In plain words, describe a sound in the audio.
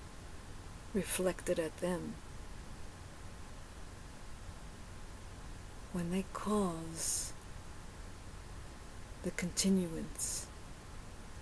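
A woman speaks calmly and close to a microphone, in short bursts with long pauses.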